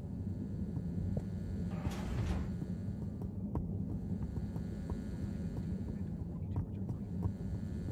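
Footsteps tap steadily on a hollow metal floor.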